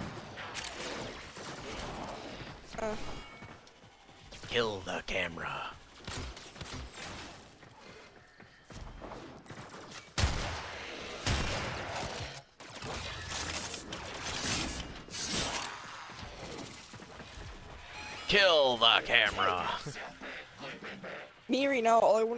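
A blade swishes through the air in quick slashes.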